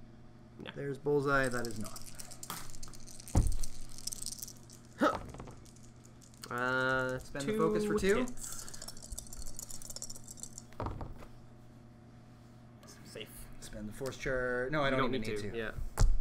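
Plastic game pieces click and tap on a table.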